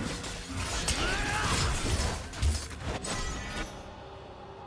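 Magic blasts and clashing hits burst in a video game fight.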